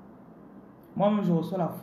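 A woman speaks close to the microphone.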